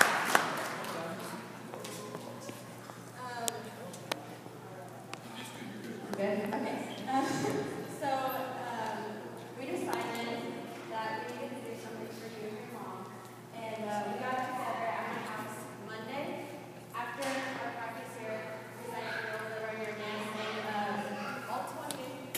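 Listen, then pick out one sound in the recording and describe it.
Teenage girls chatter and talk among themselves in a large echoing hall.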